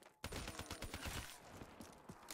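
Rapid gunfire rattles and bursts.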